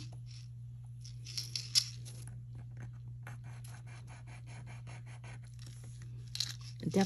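A metal ring scrapes in short, quick strokes against a stone.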